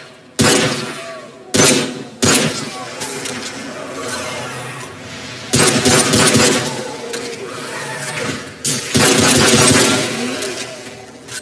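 Gunshots bang loudly and echo.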